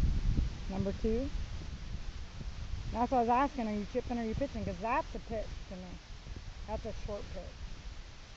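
A young girl talks calmly nearby.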